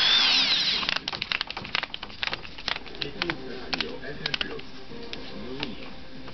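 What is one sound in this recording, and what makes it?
A plastic tool body clicks and knocks as it is handled.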